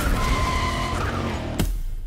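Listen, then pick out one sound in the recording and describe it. Tyres screech as a car drifts sharply.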